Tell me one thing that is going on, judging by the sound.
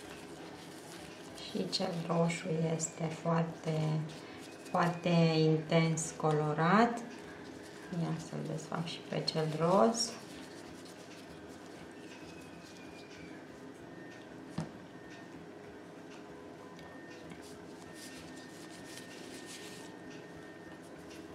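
Damp paper rustles and crinkles softly as it is wrapped around an egg.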